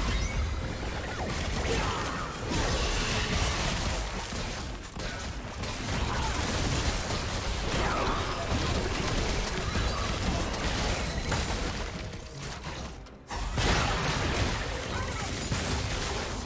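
Magic blasts whoosh and crackle in a fierce fight.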